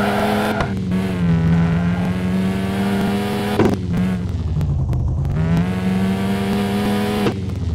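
A sports car engine roars steadily, its pitch dipping and rising with gear changes.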